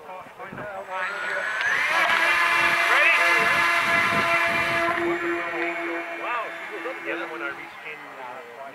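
A small model plane engine whines loudly, then fades as the plane climbs away.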